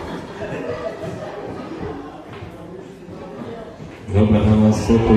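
A crowd of guests chatters in a large echoing hall.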